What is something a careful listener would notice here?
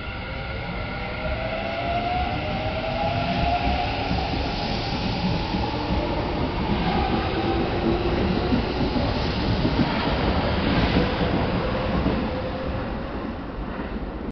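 A train rumbles and clatters past along the track, then fades away.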